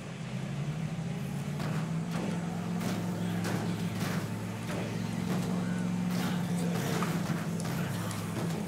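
A van engine drones steadily.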